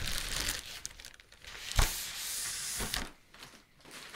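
Bubble wrap crinkles and rustles as a box is pulled out of it.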